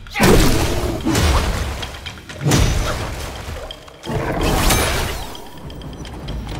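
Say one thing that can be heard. A huge beast roars and growls loudly.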